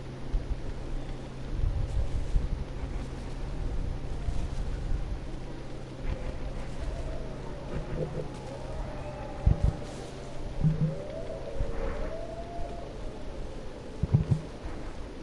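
Heavy footsteps crunch along a dirt path.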